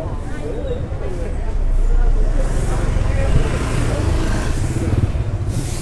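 Motorbike engines hum along a street.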